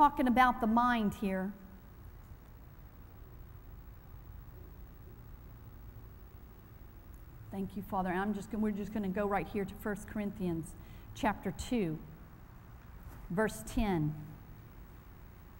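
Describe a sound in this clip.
A woman speaks calmly through a microphone in a large echoing hall.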